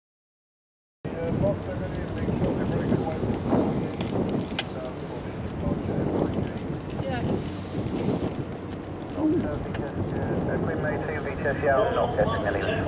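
Wind blows against the microphone outdoors in gusts.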